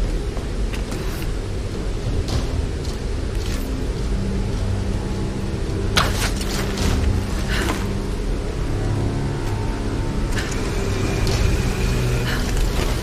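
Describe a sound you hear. A waterfall rushes steadily nearby.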